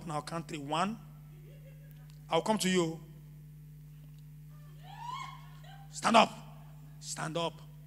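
A man preaches with animation through a microphone, in short bursts with pauses.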